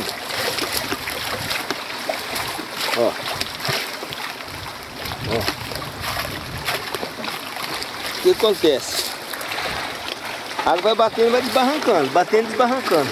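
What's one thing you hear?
Water flows and trickles in a small stream.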